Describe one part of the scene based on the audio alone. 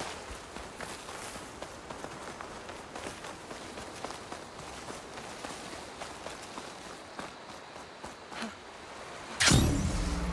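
Footsteps rustle softly through leafy undergrowth.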